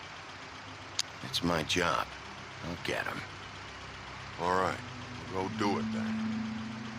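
A man answers in a low, calm voice.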